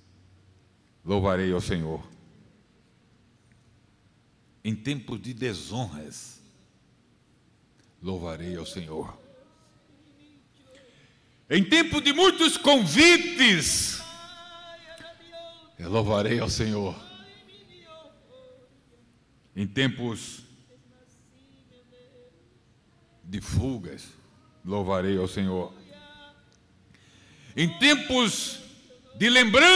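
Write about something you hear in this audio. A middle-aged man reads aloud into a microphone in bursts, with pauses, over a loudspeaker.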